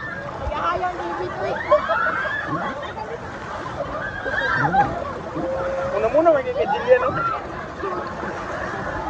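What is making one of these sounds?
Water splashes and churns loudly close by.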